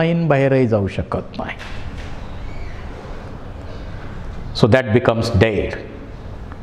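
A middle-aged man speaks calmly and clearly into a clip-on microphone.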